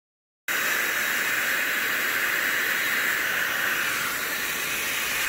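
An electric blower whirs steadily.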